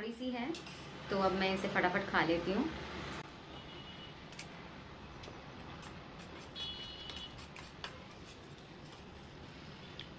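A spoon scrapes and clinks against a plate.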